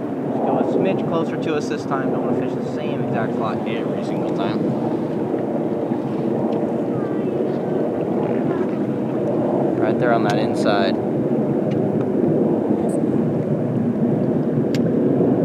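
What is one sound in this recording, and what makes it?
Water rushes and laps steadily, heard close by outdoors.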